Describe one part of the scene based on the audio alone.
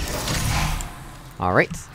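A heavy door slides open with a mechanical whoosh.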